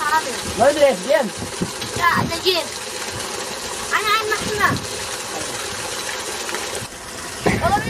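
Water sprays from a hose against a wire fence.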